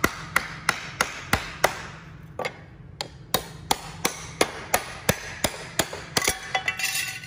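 A hammer strikes metal sheets in quick, regular blows.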